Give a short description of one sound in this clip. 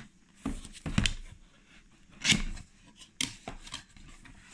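Cardboard flaps rustle and scrape as a box is opened.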